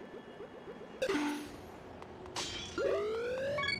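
A bright game chime sounds with a rising tune.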